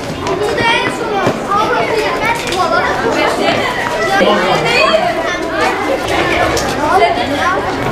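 A crowd of children shout and chatter outdoors at play.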